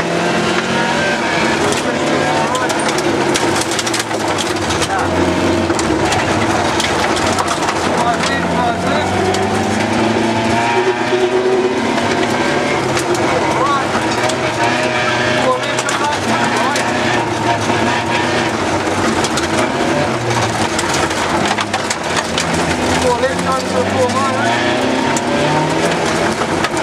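A car engine roars loudly and revs up and down.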